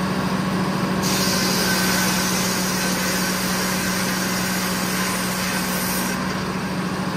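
A circular saw screams as it cuts through a log.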